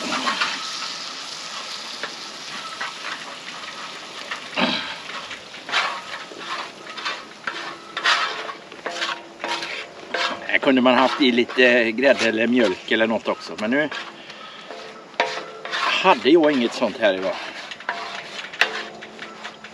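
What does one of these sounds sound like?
A wooden spatula scrapes against a metal pan.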